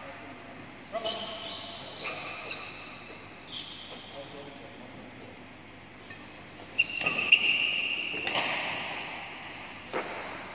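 Sports shoes squeak sharply on a hard court floor in an echoing hall.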